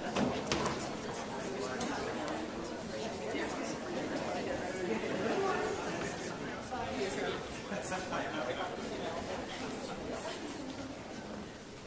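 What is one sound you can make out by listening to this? A large choir sings together in a reverberant hall.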